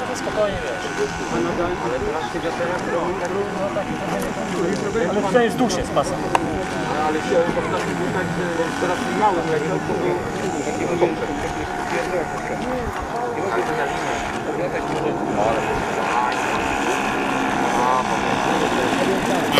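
A small model plane engine buzzes steadily overhead, then draws closer as the plane lands.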